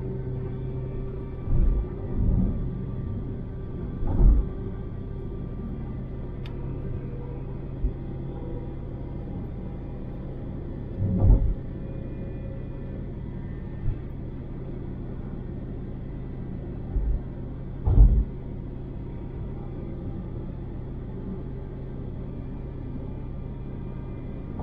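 Tyres roll on the road surface with a low rumble.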